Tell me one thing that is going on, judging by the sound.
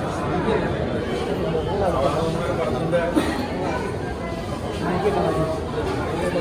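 A crowd of men chatter and talk over one another nearby.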